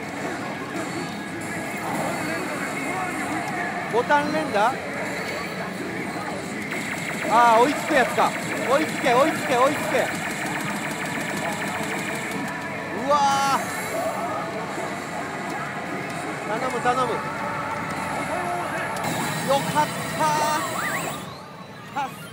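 A pachinko machine plays loud electronic music and effects.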